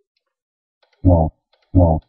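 A synthetic computer voice quickly says a single word.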